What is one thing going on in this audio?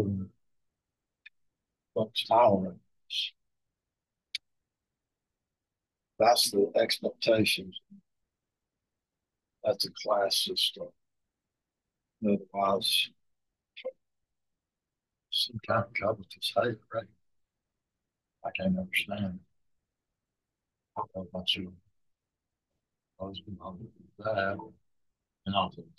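An older man talks in short bursts with pauses, close to the microphone.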